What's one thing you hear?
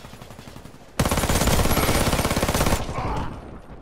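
Gunfire rattles in a rapid, loud burst.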